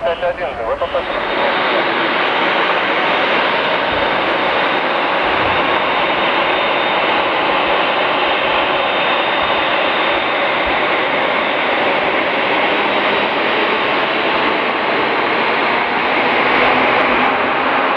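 A jet airliner's engines roar steadily nearby.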